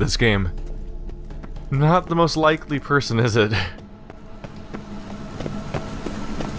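Footsteps fall on stone stairs.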